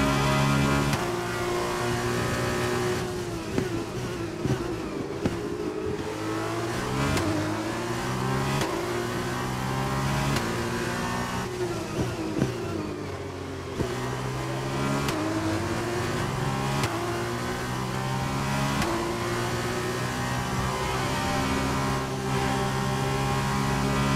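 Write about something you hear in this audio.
Gear shifts click sharply between engine pitches.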